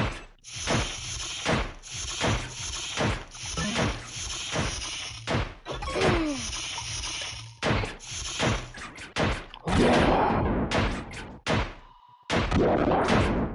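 Bright magical blasts burst and whoosh.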